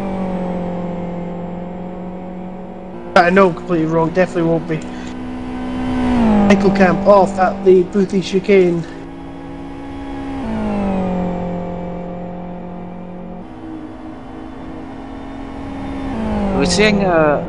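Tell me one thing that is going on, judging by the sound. A racing car engine roars steadily, rising and falling in pitch.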